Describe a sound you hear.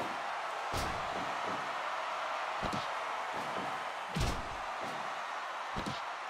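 Heavy blows thud against a wrestling ring mat.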